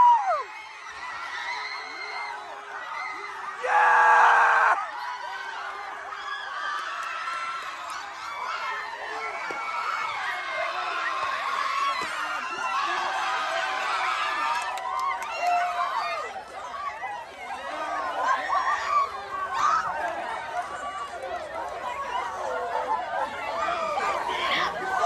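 A large crowd of young people sings and cheers loudly outdoors.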